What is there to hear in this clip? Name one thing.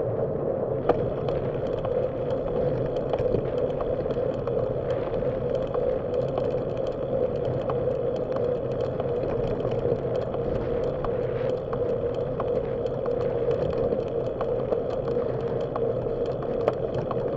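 Wind rushes loudly and steadily past a moving bicycle.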